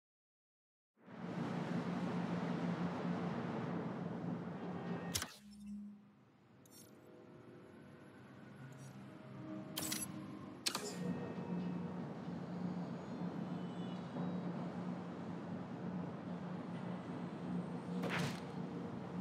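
Traffic hums low and steady far below.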